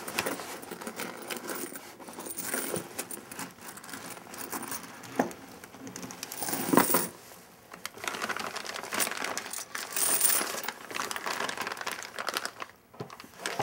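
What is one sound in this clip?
A young woman talks quietly and close by.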